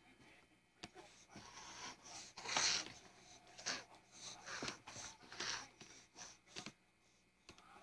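A baby pats and crinkles a plastic play mat up close.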